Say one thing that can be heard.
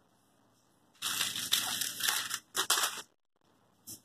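A plastic wipes packet crinkles.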